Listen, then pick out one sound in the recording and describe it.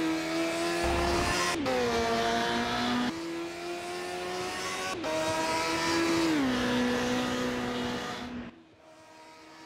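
A racing car engine roars at high revs and drops in pitch with each gear change.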